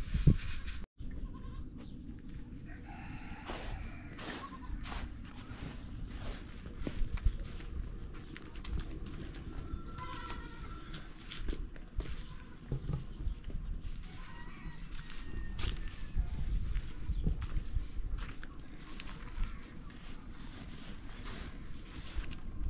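Rice grains rustle and patter as hands stir them in a metal tray.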